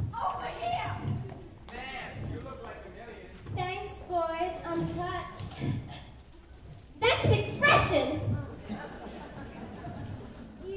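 Young actors speak and sing loudly on a stage in a large echoing hall.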